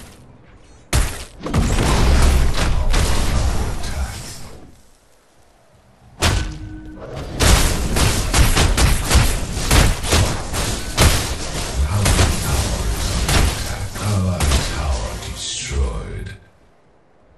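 Magical blasts and explosions boom loudly.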